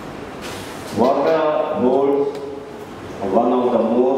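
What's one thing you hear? A man speaks into a microphone over a loudspeaker in a large echoing hall.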